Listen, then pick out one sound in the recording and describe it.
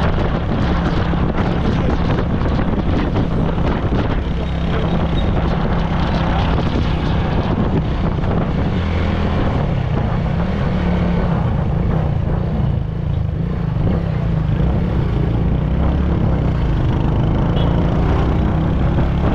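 A motorcycle engine hums steadily while riding along a street.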